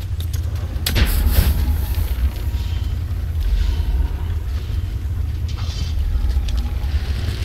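Sparks crackle and burst in a fight.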